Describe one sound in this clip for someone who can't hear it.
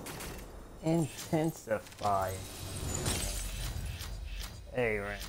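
Glass shatters loudly.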